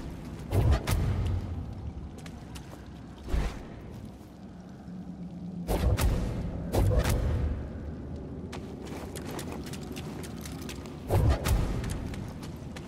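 Heavy thuds boom and echo through a cave.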